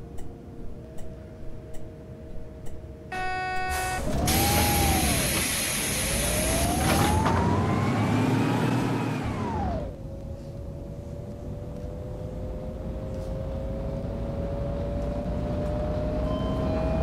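A bus engine hums steadily and rises in pitch as the bus speeds up.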